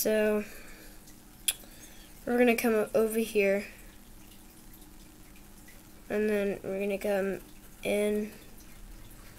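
A young child speaks in short bursts close by.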